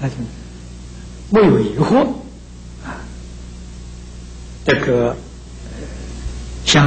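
An elderly man speaks calmly and slowly into a microphone, with pauses between phrases.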